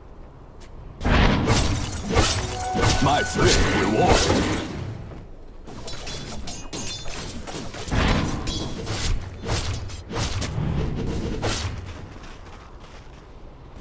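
Magic blasts and weapon hits crackle and thump in a video game battle.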